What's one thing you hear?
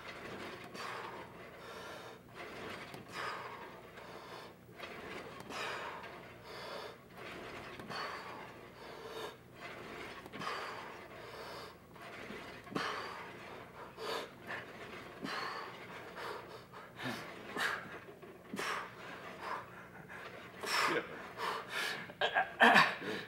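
Exercise machine weights clank and knock.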